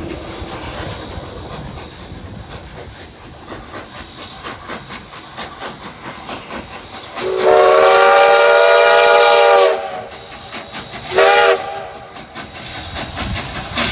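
A steam locomotive chuffs.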